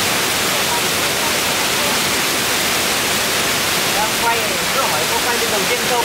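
Water sprays hard from a leaking hose onto the ground.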